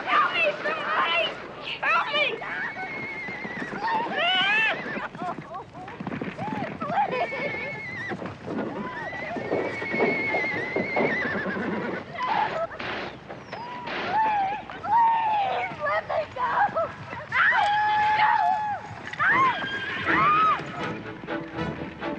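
Men whoop and yell loudly nearby.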